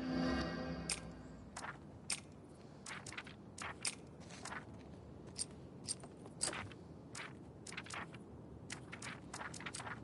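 Short soft menu clicks tick one after another.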